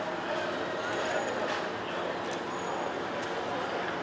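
A crowd murmurs and chatters in a large, echoing hall.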